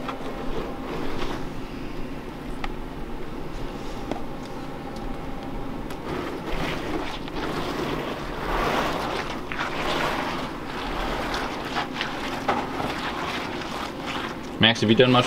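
A soft, sticky mixture squelches as a gloved hand spreads it.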